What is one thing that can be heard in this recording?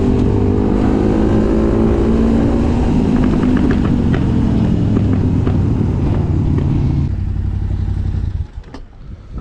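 A quad bike engine roars loudly at speed.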